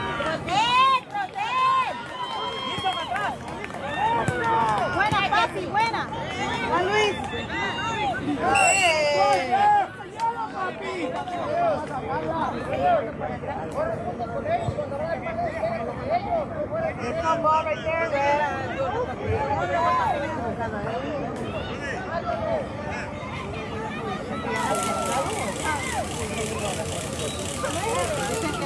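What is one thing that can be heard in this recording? Young men shout and call to each other across an open field, outdoors.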